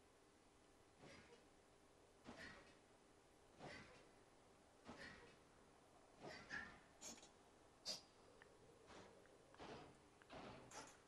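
Metal feet clank in slow, steady steps.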